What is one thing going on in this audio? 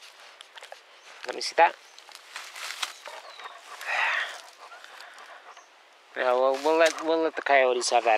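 Leaves and twigs rustle as someone pushes through brush close by.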